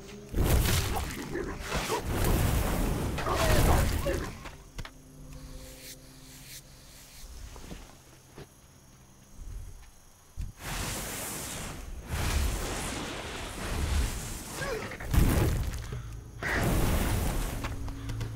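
A character's weapon strikes a creature in combat.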